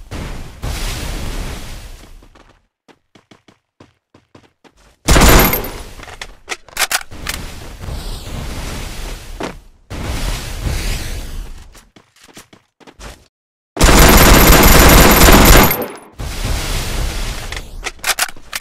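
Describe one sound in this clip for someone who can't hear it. Barriers burst up with loud rushing whooshes, one after another.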